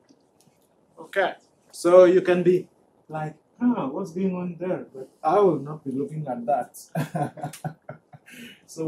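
A man lectures calmly into a microphone.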